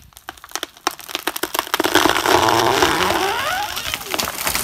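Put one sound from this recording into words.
A chainsaw runs.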